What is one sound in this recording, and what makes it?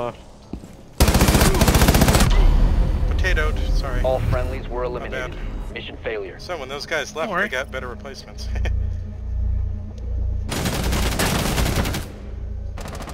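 A rifle fires rapid bursts of gunshots up close.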